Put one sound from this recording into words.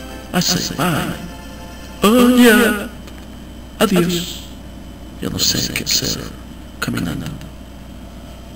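A middle-aged man speaks with feeling, close by, in short bursts.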